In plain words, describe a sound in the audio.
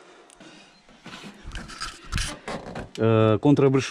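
Thin metal roofing rattles and clanks under a hand.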